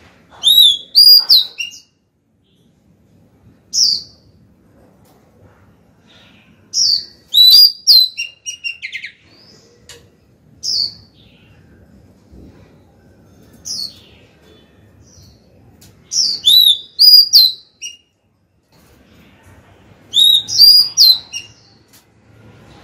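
A songbird sings loud, clear whistling phrases close by, in bursts with pauses between.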